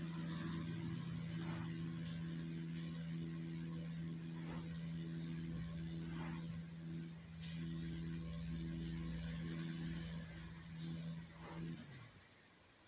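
A motorcycle engine hums steadily at high speed.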